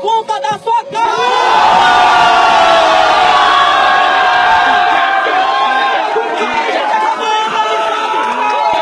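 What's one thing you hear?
A crowd of young men cheers and shouts loudly.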